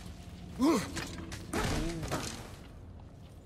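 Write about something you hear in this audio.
A young man speaks briefly with animation, close to a microphone.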